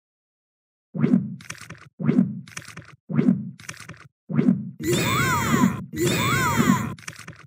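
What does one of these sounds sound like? Soft thuds sound as blocks drop onto a stack, one after another.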